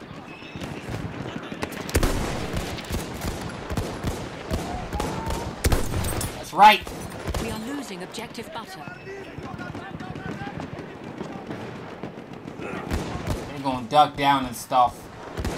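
Distant gunfire crackles throughout.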